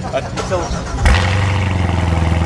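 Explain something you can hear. A car engine starts with a loud roar.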